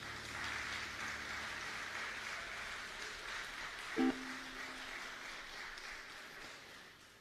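An audience murmurs quietly in a large echoing hall.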